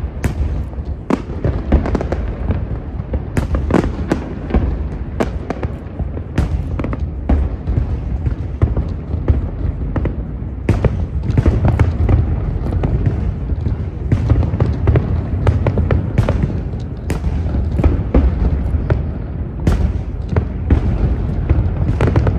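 Fireworks boom and crackle in the distance, outdoors in the open air.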